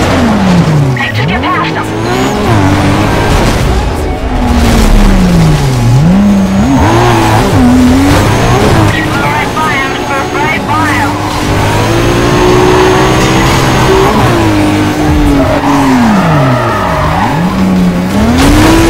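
Tyres screech as a car drifts through corners.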